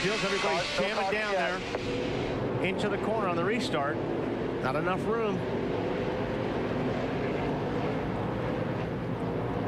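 Racing car engines roar loudly at high speed.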